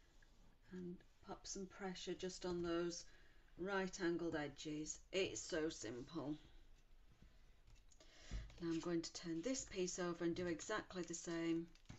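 Sheets of paper slide and rustle on a table.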